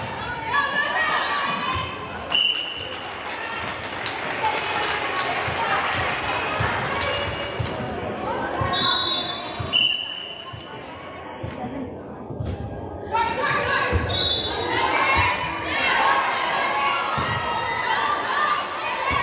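A volleyball thumps as players bump it.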